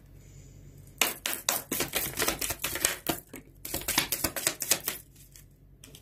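Cards are shuffled rapidly with crisp flicking sounds.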